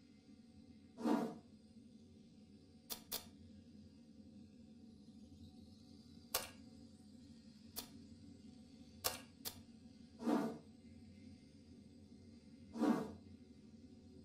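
Short electronic menu clicks and blips sound now and then.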